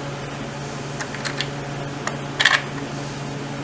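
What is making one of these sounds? Metal tools tap and click against engine parts.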